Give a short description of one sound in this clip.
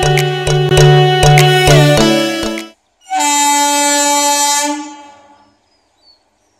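A train horn blares loudly in long blasts.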